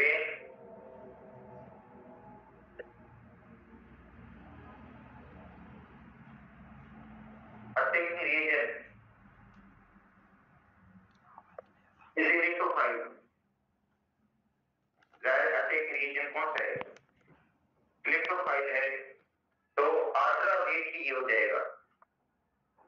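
A middle-aged man lectures calmly into a headset microphone, speaking in short bursts with pauses.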